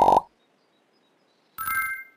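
Coins jingle brightly in a game as they are collected.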